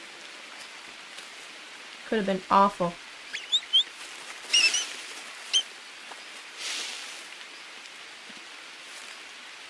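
Leaves rustle as someone pushes through dense undergrowth.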